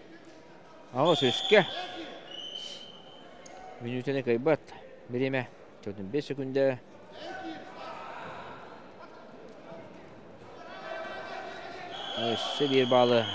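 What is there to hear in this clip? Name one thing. Men shout loudly and urgently nearby.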